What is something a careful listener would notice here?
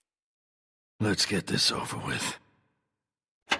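A middle-aged man speaks in a low, weary voice.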